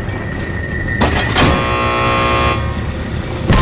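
An electrical machine buzzes loudly and briefly.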